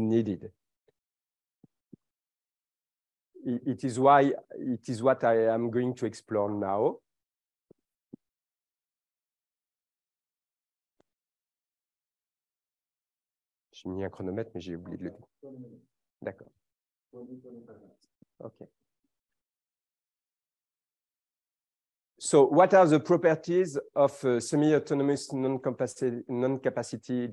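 A man lectures through a microphone, speaking calmly with pauses.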